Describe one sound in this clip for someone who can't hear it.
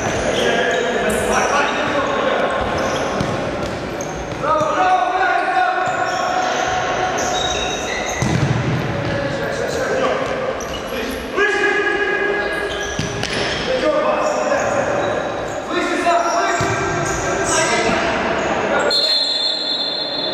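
Sneakers squeak on a wooden floor in an echoing hall.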